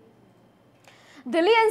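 A woman reads out calmly in a newsreader's voice.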